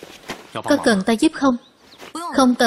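A man asks a question in a calm voice, close by.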